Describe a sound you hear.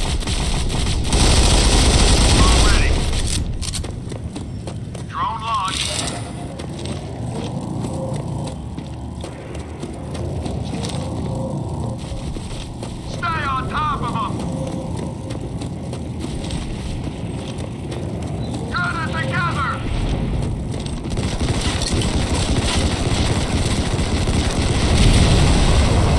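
Gunfire rattles from a rifle.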